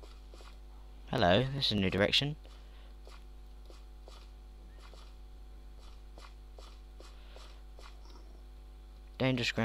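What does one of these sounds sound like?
Footsteps tread steadily over grass and gravel.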